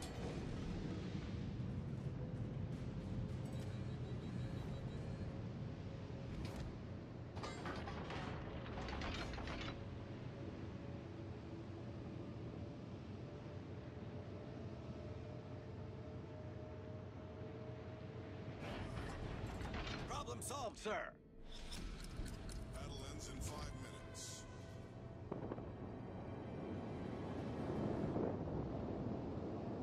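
A large ship's engine rumbles low and steady.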